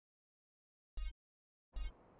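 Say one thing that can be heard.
A short electronic chime sounds as a game menu option is chosen.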